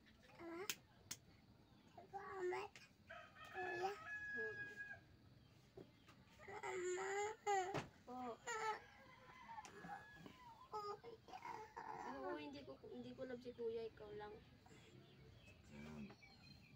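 A young boy whimpers and cries out close by.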